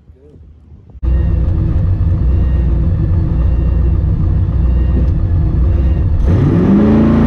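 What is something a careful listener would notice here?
A car engine idles loudly close by.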